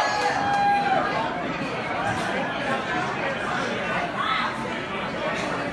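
A man sings into a microphone, heard through loudspeakers.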